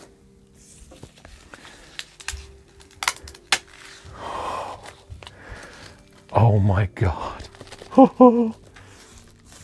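Plastic wrapping crinkles and rustles as hands pull it open.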